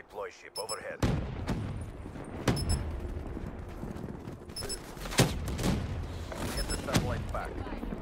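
Gunshots ring out sharply, each followed by a short echo.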